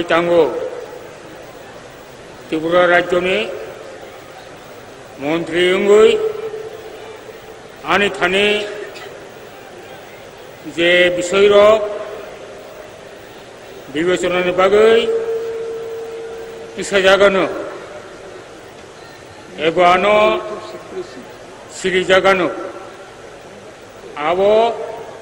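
An elderly man reads out solemnly into a microphone in short phrases with pauses.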